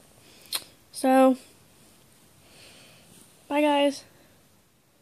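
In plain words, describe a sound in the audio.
A newborn baby cries out in short, sharp wails close by.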